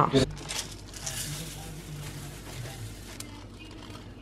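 Dry grains pour and patter into a metal pan.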